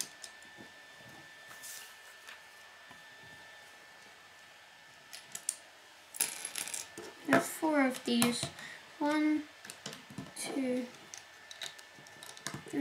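Plastic toy bricks click and snap together under fingers.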